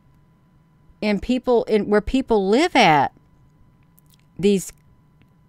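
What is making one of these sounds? An older woman speaks calmly and closely into a microphone.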